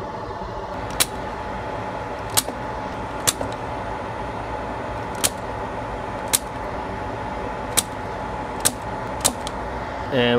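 A spring-loaded desoldering pump snaps sharply several times.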